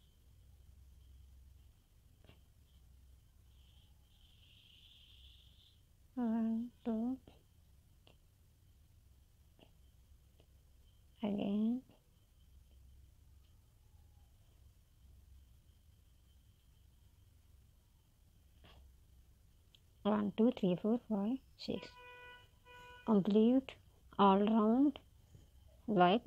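A crochet hook softly clicks and rustles through yarn.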